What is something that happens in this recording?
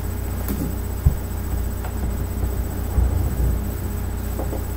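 Books thump and rustle as they are handled close by.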